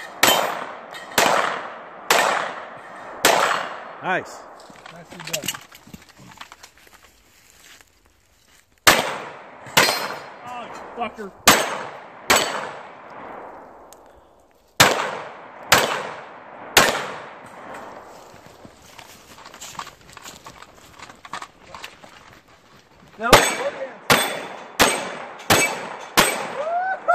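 Gunshots crack loudly outdoors, fired in quick bursts, with echoes ringing off into the distance.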